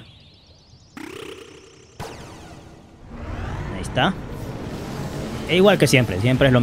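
A shimmering magical whoosh swells and rumbles.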